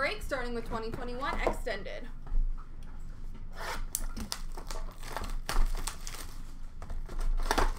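Cardboard boxes rustle and knock as they are handled close by.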